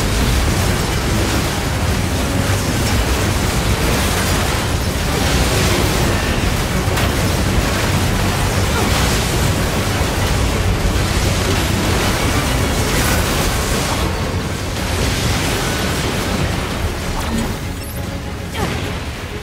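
Explosions boom and crackle again and again.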